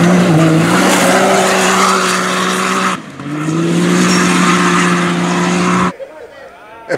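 An off-road buggy engine roars loudly at high revs.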